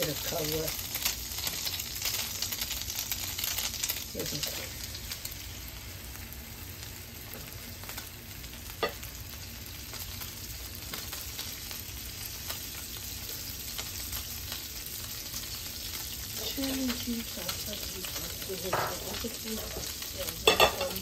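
Bread sizzles in a hot frying pan.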